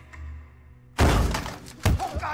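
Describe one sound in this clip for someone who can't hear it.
A man is slammed down onto a table with a loud thud.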